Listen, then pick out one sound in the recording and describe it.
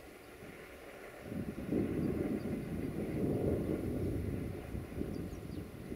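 A train rumbles along the tracks in the distance.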